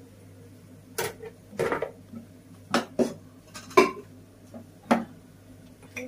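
A knife scrapes and knocks food into a plastic colander.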